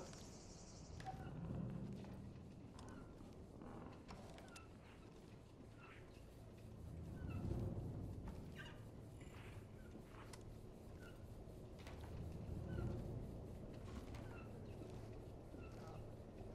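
Footsteps crunch over debris.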